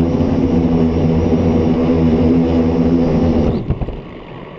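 A small drone's propellers whine loudly and steadily close by.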